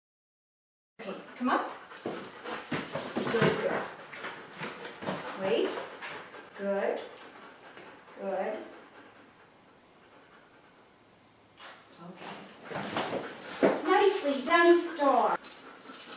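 A woman speaks encouragingly to a dog nearby.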